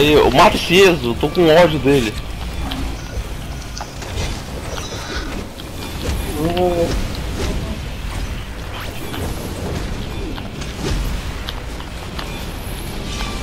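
Blasts and hits crackle in a fast fight.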